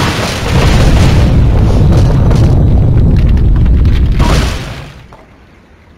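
Wooden blocks crash and tumble with a deep rumble, then fade away.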